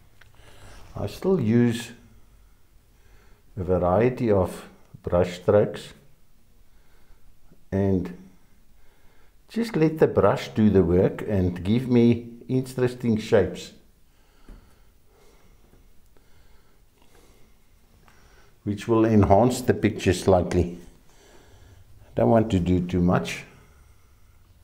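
An elderly man talks calmly and close by, in short phrases with pauses.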